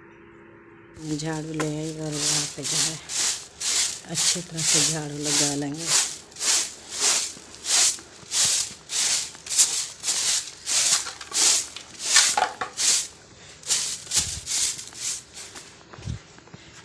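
A stiff brush scrubs a floor in quick, rhythmic strokes.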